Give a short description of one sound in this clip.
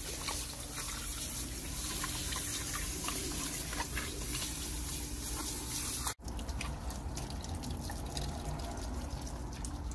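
A garden hose sprays a hissing stream of water.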